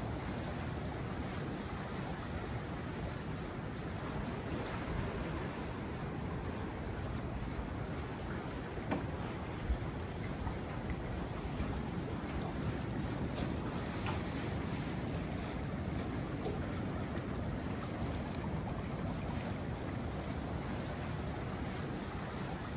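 Water laps gently against wooden posts.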